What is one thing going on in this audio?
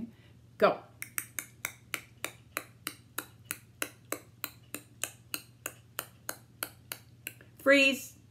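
Fingers snap in a quick, steady beat close by.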